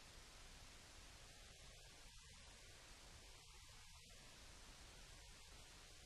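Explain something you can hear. A man handles and rustles sheets of paper.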